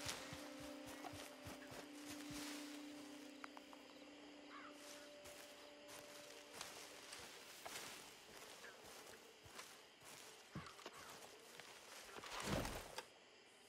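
Footsteps rustle through dense leafy undergrowth.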